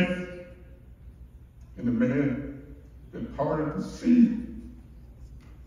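A man speaks slowly and solemnly into a microphone in a large echoing hall.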